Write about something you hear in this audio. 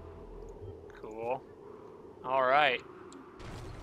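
Short electronic chirps ring out twice from a game.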